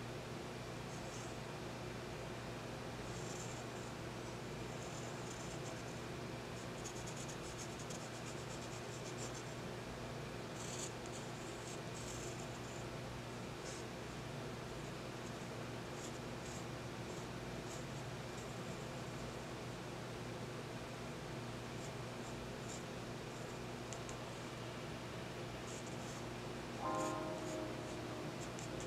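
A pencil scratches softly on paper in short strokes.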